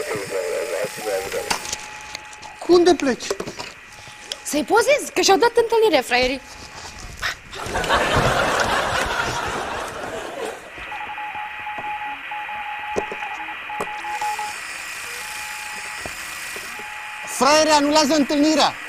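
A radio receiver hisses and crackles with static.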